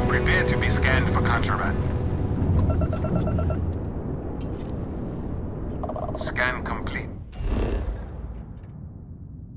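A spaceship engine rumbles low and steady, then fades away.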